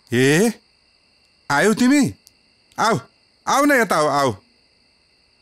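A woman speaks cheerfully in short phrases, close by.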